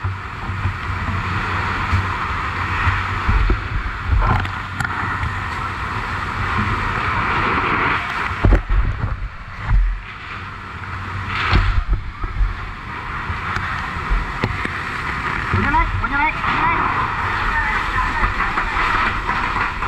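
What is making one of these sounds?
A fire hose sprays water with a steady rushing hiss.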